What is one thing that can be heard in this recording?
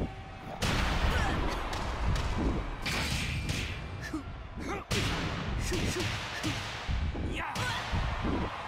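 Punches and kicks land with sharp, heavy thuds.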